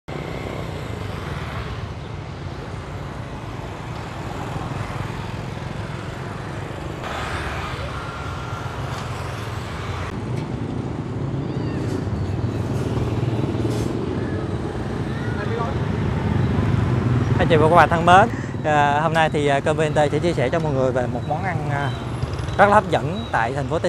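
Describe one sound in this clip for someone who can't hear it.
Motorbike engines hum and pass by on a street.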